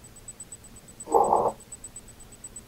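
A young man speaks briefly and loudly close to a microphone.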